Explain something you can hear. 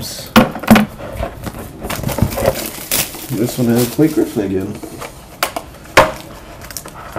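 Hands handle and tap small metal boxes with sharp clicks and knocks.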